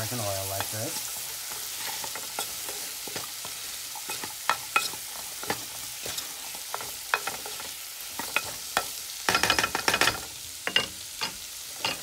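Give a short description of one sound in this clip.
A wooden spoon scrapes and knocks against a pan.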